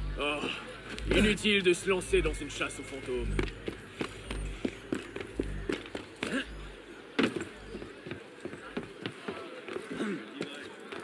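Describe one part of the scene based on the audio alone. Footsteps patter quickly across roof tiles.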